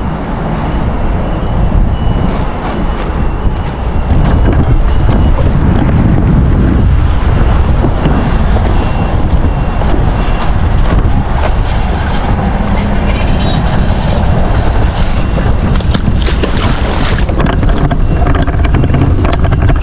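Wind blusters loudly against the microphone outdoors.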